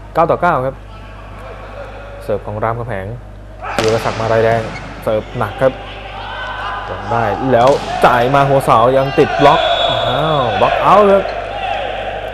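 A volleyball is struck during a rally in an indoor hall.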